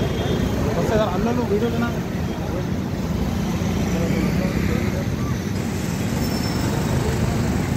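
A motor scooter rides past.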